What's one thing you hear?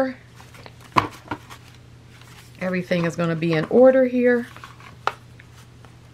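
A stiff book cover taps against a hard surface.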